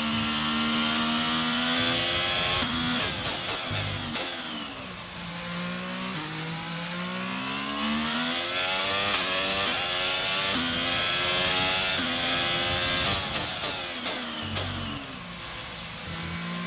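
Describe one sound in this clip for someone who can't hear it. A racing car engine whines loudly, rising and falling in pitch as it shifts gears and brakes.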